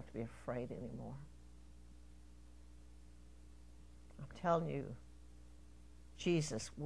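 An elderly woman speaks in short phrases with pauses, heard through a microphone in a room.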